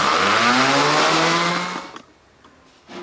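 An electric sander whirs loudly, then winds down and stops.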